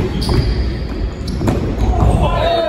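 A ball is kicked hard in a large echoing hall.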